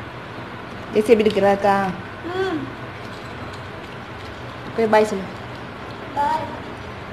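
A young girl speaks in short bursts close by.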